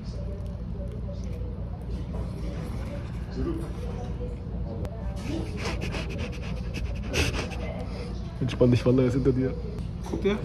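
A man chews and munches on food close by.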